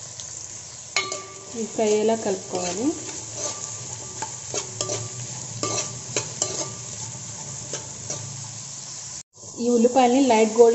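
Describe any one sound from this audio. A metal spoon scrapes and clinks against a steel bowl while stirring.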